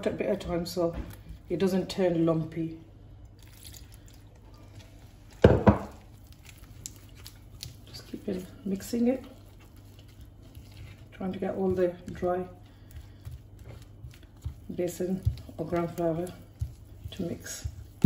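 Hands squish and knead wet dough in a bowl.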